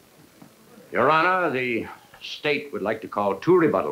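A man speaks loudly and urgently in an echoing room.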